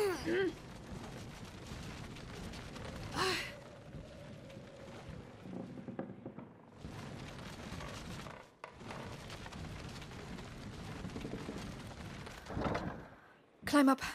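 A heavy wooden crate scrapes across a wooden floor.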